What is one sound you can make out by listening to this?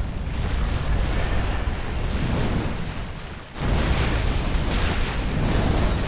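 A huge monster roars and thrashes with deep rumbling booms.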